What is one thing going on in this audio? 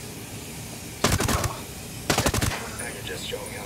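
Short bursts of rifle fire rattle out.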